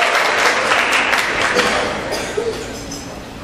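An audience claps and cheers in a large echoing hall, then the applause dies away.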